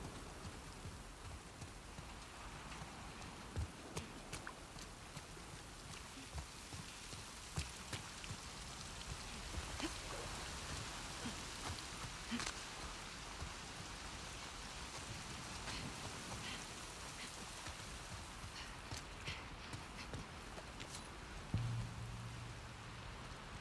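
Footsteps crunch on wet grass and gravel.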